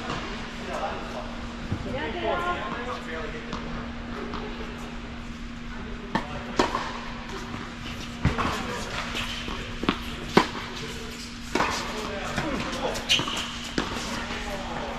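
Tennis shoes squeak on a hard court.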